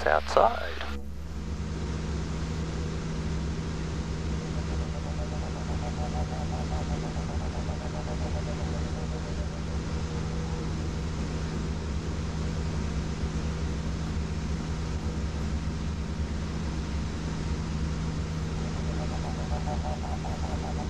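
A small propeller plane's engine drones steadily inside the cabin.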